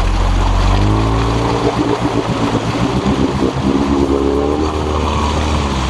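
Mud and water splash and slosh around the wheels.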